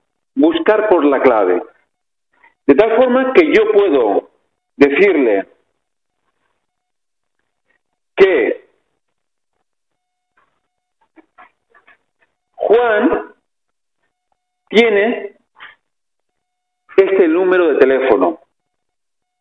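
A man lectures through a microphone, speaking calmly in short phrases.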